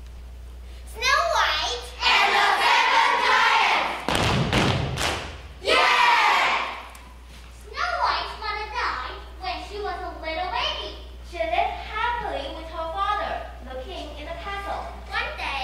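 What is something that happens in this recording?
A group of children recite loudly together in an echoing hall.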